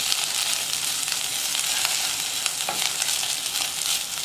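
A spatula scrapes and stirs food in a pot.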